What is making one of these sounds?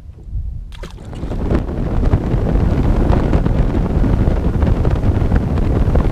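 A boat motor roars as the boat speeds across the water.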